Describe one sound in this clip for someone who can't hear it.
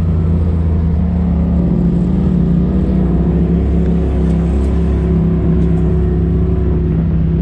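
An off-road vehicle engine rumbles steadily up close.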